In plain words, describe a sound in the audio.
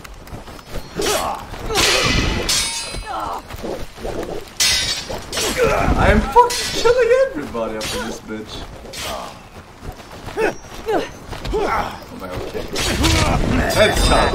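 Swords clash and slash in a fast fight.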